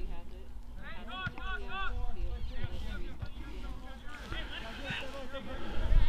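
Young men shout to each other across an open field at a distance.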